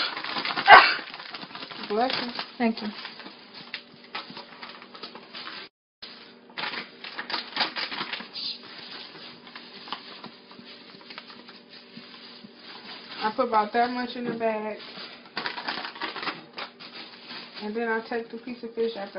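A plastic bag crinkles and rustles up close.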